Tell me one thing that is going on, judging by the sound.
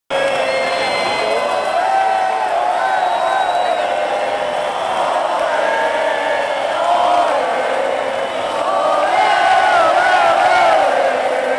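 A large crowd sings and cheers loudly in a big echoing space.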